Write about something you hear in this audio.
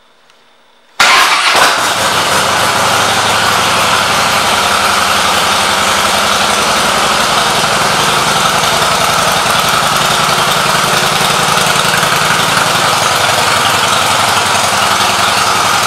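A motorcycle engine starts with a roar and idles with a steady, loud rumble.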